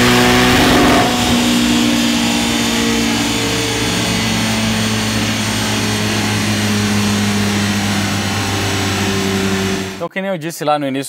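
A sports car engine drones steadily at high speed.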